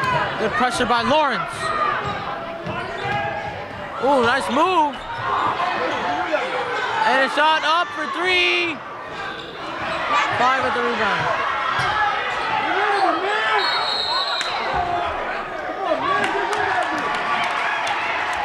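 A crowd murmurs and calls out in the stands.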